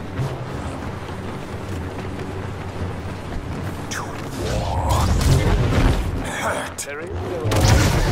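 A laser sword hums and buzzes as it swings.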